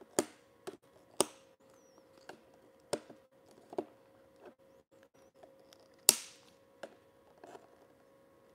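A knife clicks and scrapes sharply.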